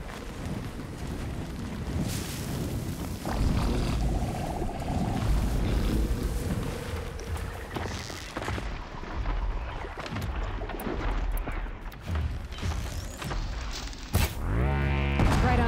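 Arrows snap from a bow and whoosh away.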